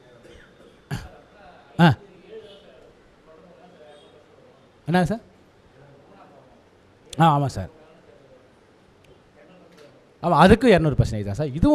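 A middle-aged man speaks into a microphone in short bursts, with pauses between phrases.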